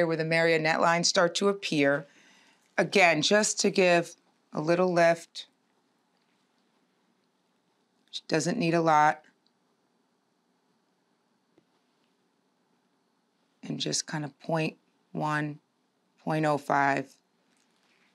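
A woman speaks calmly and close by, in short phrases with pauses.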